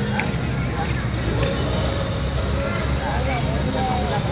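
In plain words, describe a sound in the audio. A small child's shoes patter on paving stones.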